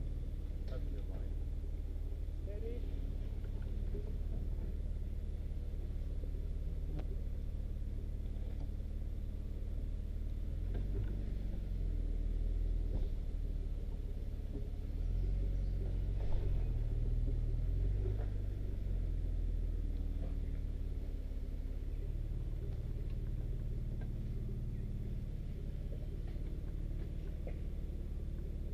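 An off-road vehicle's engine idles and rumbles low as it crawls over rocks.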